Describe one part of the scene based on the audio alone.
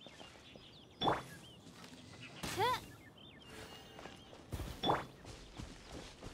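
Magical chimes and whooshes sound in a video game.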